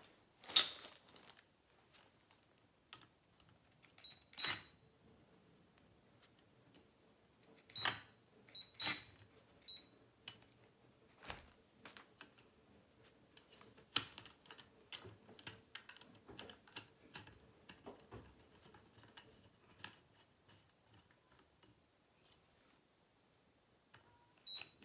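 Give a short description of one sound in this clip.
Metal tubes clink and knock together.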